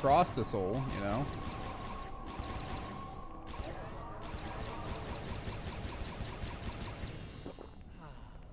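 A magical energy crackles and hums, then fades away.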